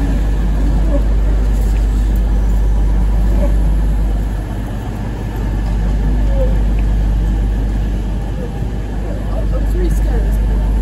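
A train engine hums steadily.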